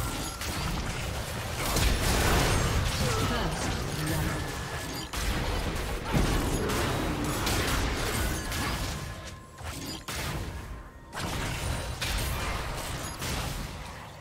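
Spell effects crackle and blast in a fast fight.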